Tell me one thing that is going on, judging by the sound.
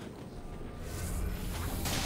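A fireball bursts with a roaring whoosh.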